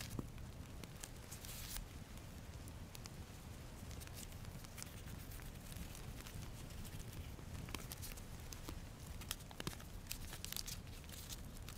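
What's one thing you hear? Paper pages rustle and turn in hands.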